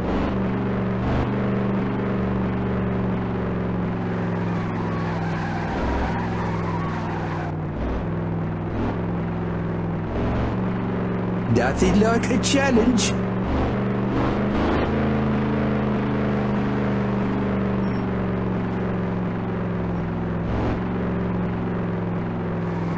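A car engine hums steadily at an even pace.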